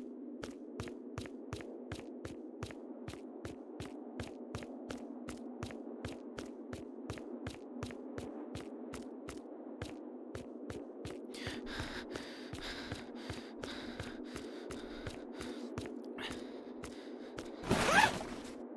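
Footsteps crunch on dirt ground.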